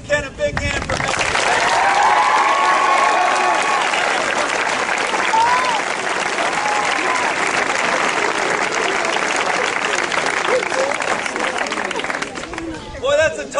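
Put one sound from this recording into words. A large crowd of children cheers and screams loudly outdoors.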